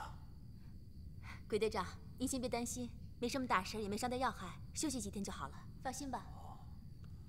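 A young woman speaks cheerfully and close by.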